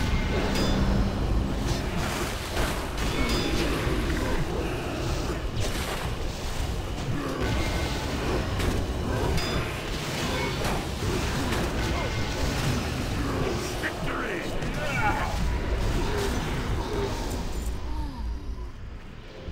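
Video game spell effects and weapon hits clash during a battle.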